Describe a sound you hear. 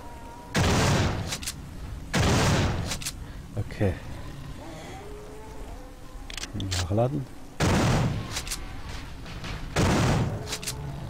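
A shotgun fires loud, booming blasts every couple of seconds.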